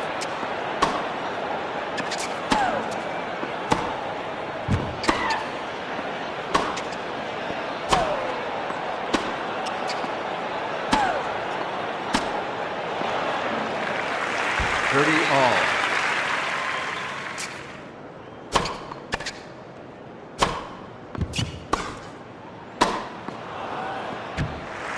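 A tennis ball is struck sharply by rackets back and forth.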